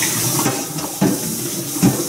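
Milk pours into a mug.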